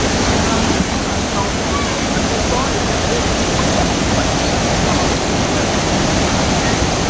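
A fast river rushes and gurgles steadily nearby.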